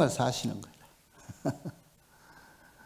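An elderly man laughs into a microphone.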